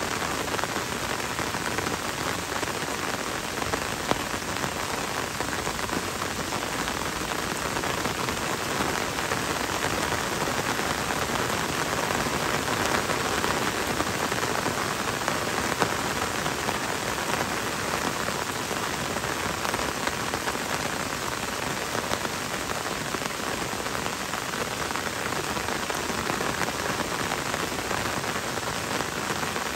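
Gentle rain falls on forest leaves and a wet road.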